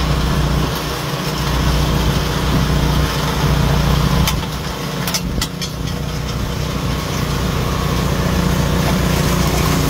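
Snow sprays and hisses from a snow blower chute.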